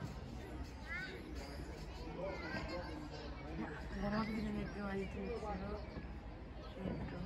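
Men talk and call out across an outdoor court.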